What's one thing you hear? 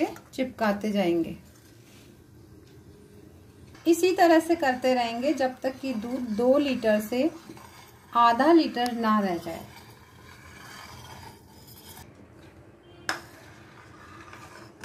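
Milk bubbles and simmers in a pot.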